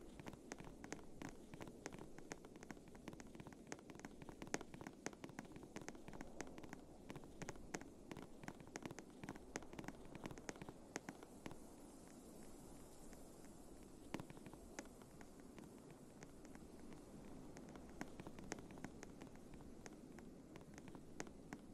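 Quick footsteps tap and scrape while climbing over rock.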